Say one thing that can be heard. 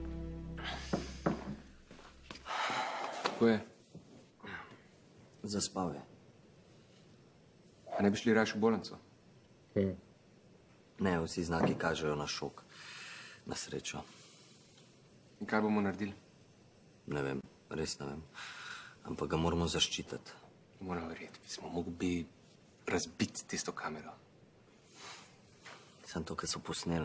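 A young man speaks quietly and seriously nearby.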